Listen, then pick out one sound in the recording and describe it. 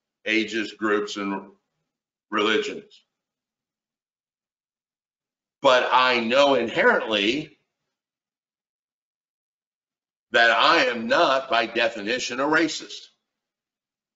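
A middle-aged man speaks with animation over an online call, pausing between phrases.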